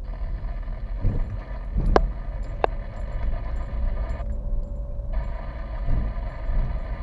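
The car's body rattles and thumps over bumps.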